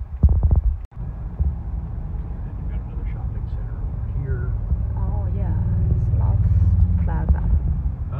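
A car's tyres rumble steadily on the road.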